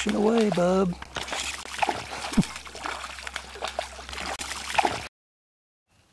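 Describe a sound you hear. A fish splashes in shallow water.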